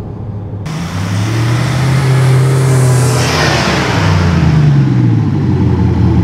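A van pulls up close by with its engine running.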